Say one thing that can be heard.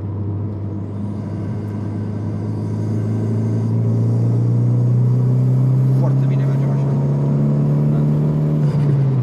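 A car engine rises in pitch as it drives past outside.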